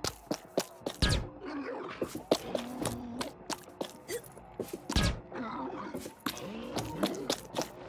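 Wooden blocks thump and clatter as they slide into place.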